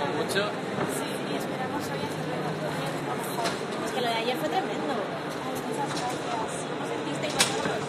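A crowd chatters in a busy echoing hall.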